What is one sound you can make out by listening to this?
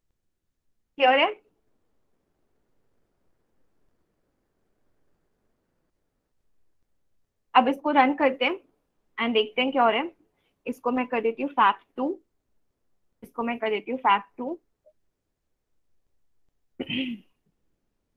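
A young woman speaks calmly through a microphone on an online call.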